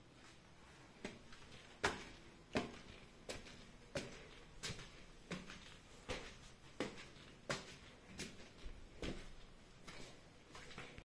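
Footsteps tap slowly and evenly on wooden stairs.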